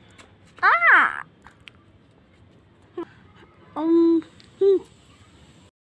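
A young girl speaks close by in a high voice.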